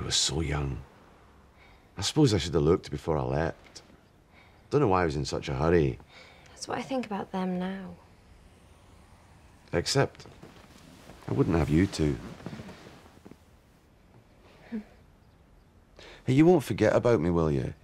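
A middle-aged man speaks softly and earnestly, close by.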